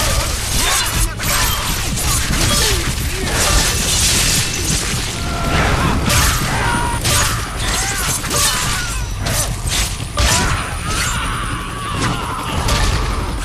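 Punches and kicks thud in a fast brawl.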